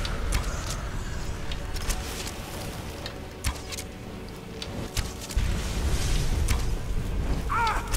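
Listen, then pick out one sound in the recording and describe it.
Electric bolts crackle and zap in sharp bursts.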